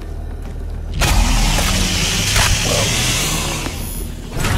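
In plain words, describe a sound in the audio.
A monster is ripped apart with wet, crunching thuds.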